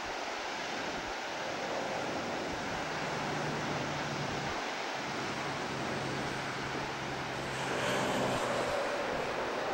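Ocean waves roar and wash against rocks far below.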